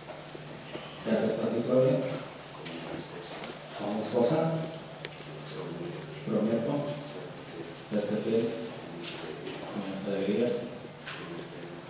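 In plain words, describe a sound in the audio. A young woman speaks softly and emotionally into a microphone, heard through a loudspeaker.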